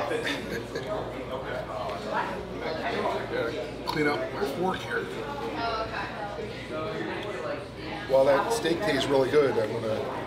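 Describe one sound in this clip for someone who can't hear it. An older man talks and laughs close by.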